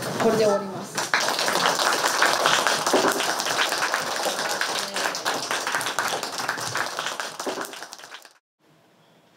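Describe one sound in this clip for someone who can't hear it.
A group of children clap their hands in applause.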